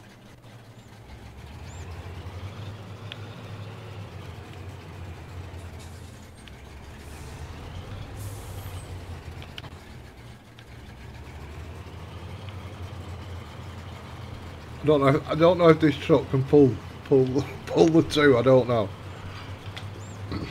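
A truck engine hums steadily as the truck drives.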